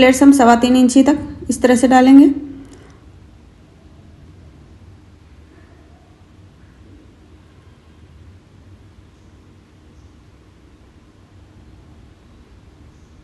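Cloth rustles softly as hands smooth and fold it.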